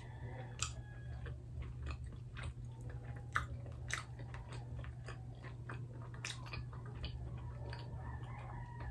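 Crispy food crackles and crunches as it is pulled apart by hand.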